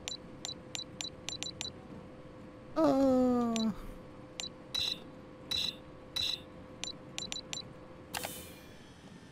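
Short electronic beeps tick in quick bursts.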